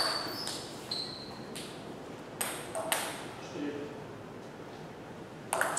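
A table tennis ball clicks back and forth off paddles and the table in a quiet, echoing hall.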